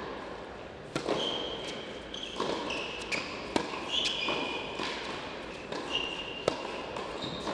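A tennis racket strikes a ball with sharp pops.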